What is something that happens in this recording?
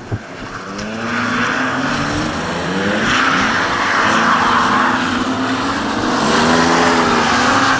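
Tyres squeal loudly as cars slide through a turn.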